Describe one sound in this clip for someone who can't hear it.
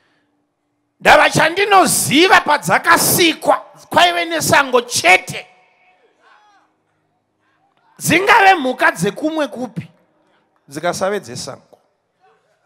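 A man preaches forcefully into a microphone, in bursts with pauses.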